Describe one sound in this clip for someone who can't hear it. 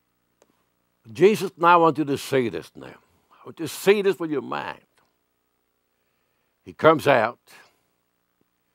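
An elderly man speaks with animation into a microphone, in pauses.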